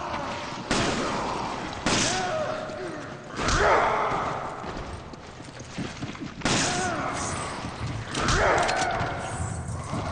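Creatures groan and snarl.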